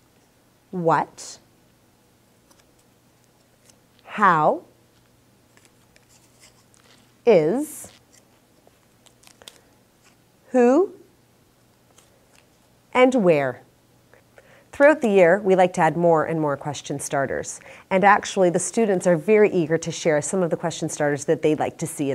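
A woman speaks calmly and clearly into a close microphone, in short bursts and then steadily.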